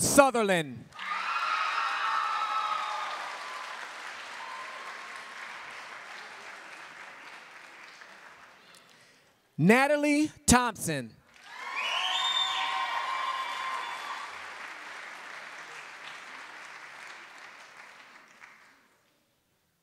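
A crowd cheers and claps, then slowly fades.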